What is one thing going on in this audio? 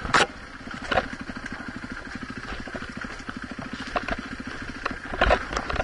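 A dirt bike engine putters steadily close by.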